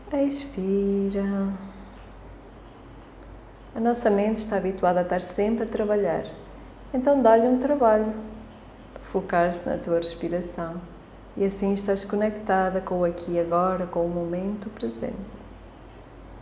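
A woman speaks slowly and calmly, close by, with long pauses.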